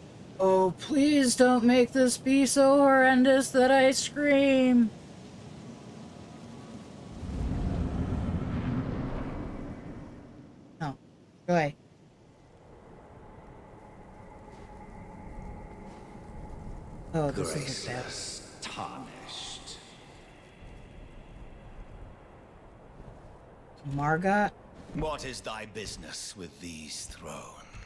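A man talks with animation into a nearby microphone.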